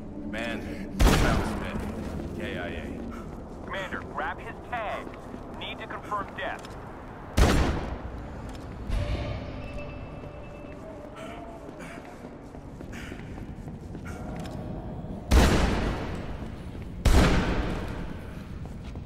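Loud gunshots crack and echo down a corridor.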